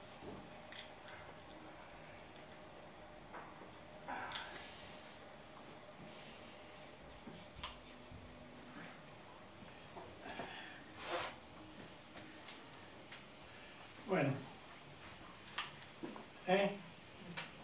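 An elderly man speaks slowly and thoughtfully into a microphone, with long pauses.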